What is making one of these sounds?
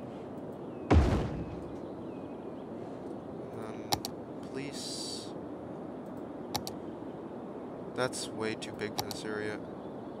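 Short clicks sound now and then.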